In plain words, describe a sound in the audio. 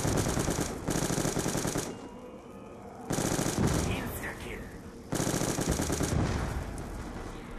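Loud explosions boom and roar.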